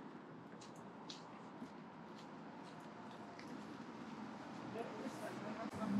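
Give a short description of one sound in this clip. Footsteps scuff along a pavement outdoors.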